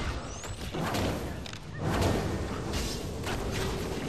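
Flames burst with a whoosh.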